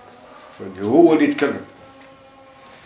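An elderly man speaks briefly and hoarsely close by.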